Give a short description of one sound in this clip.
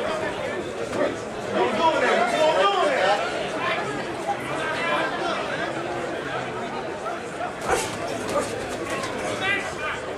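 A crowd of spectators talks and shouts around the ring outdoors.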